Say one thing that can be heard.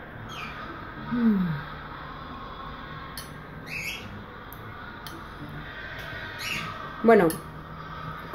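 A young woman chews food close to a microphone, with soft wet mouth sounds.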